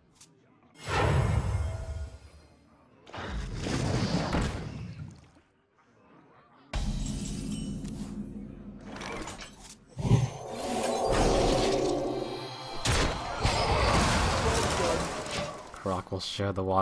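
Game sound effects whoosh and chime.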